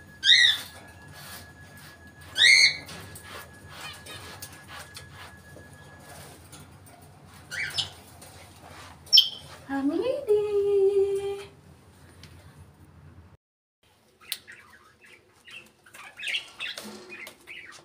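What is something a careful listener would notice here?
A parrot whistles and squawks up close.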